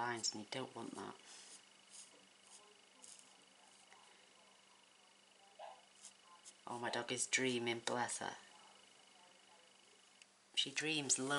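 A felt marker squeaks and scratches softly on card.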